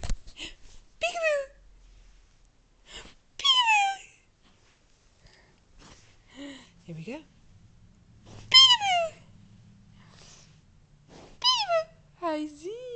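A baby squeals and babbles up close.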